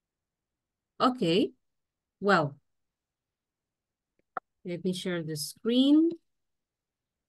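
A woman speaks in short phrases over an online call.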